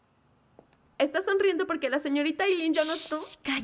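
A young woman speaks quickly and with animation close by.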